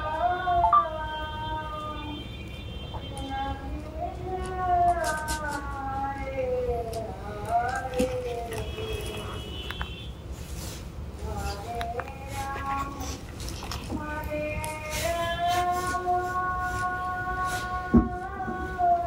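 An elderly man sings slowly in a chanting voice, close to a microphone.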